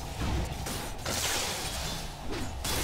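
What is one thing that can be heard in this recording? Lightning zaps with a sharp buzzing crackle.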